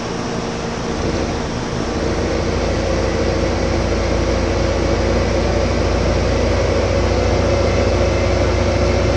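A tractor engine rumbles steadily as the tractor drives along.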